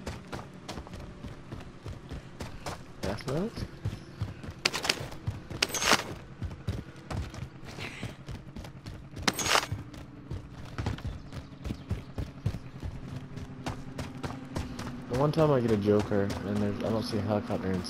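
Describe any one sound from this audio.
Footsteps crunch quickly over gravel and snow.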